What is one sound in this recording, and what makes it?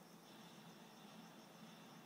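A video game explosion booms faintly from a television speaker.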